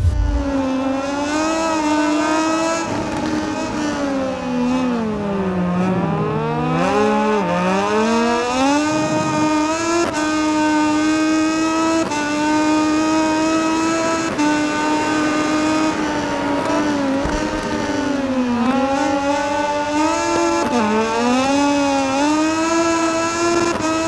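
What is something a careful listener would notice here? A racing motorcycle engine screams, its pitch rising and falling with gear changes.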